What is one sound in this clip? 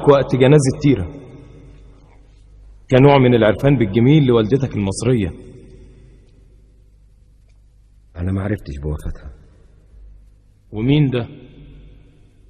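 A man speaks forcefully in a loud, commanding voice, with a slight echo.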